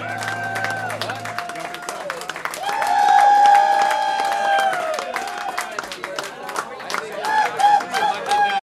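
A crowd whistles and cheers loudly.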